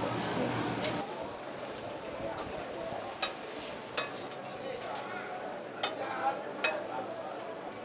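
A metal spatula scrapes and taps on a hot griddle.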